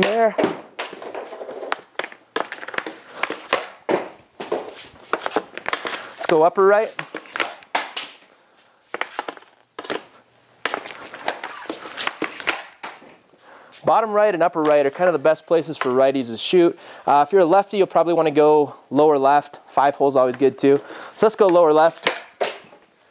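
A hockey stick slaps pucks with sharp cracks.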